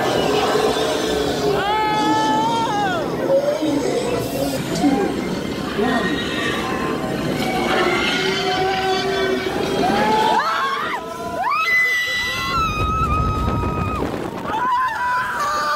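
Riders scream on a dark ride.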